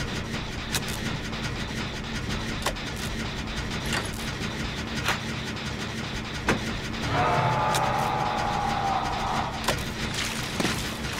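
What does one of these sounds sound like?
Metal parts click and clatter as hands tinker with a generator engine.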